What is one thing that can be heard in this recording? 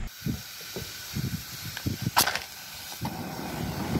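A gas burner hisses as it lights.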